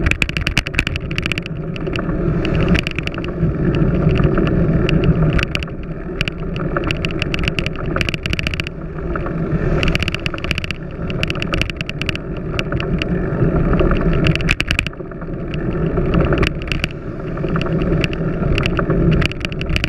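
Wind buffets a microphone on a moving bicycle.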